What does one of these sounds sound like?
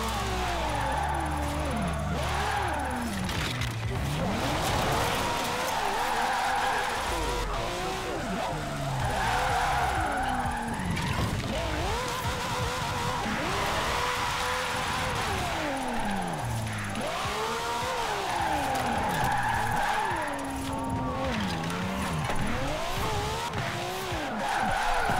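A racing car engine revs and whines as gears shift up and down.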